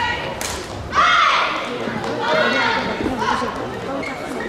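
Young players shout loudly after winning a point.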